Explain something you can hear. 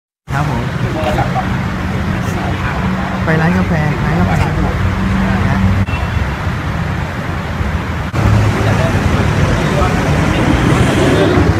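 Men talk calmly nearby outdoors.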